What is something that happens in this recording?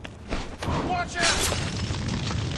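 A glass bottle shatters on the ground.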